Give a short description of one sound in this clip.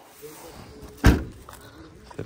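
A car's boot lid slams shut with a thud.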